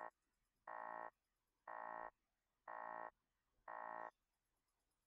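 An electronic alert beeps four times in a steady pattern.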